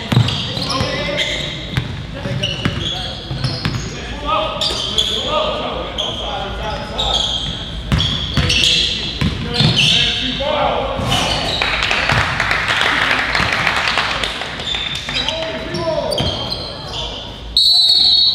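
Sneakers squeak sharply on a hard court floor in an echoing gym.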